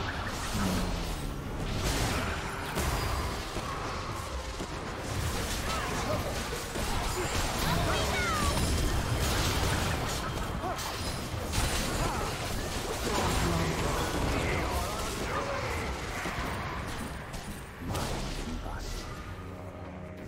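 Game spell effects whoosh, crackle and burst in a busy fight.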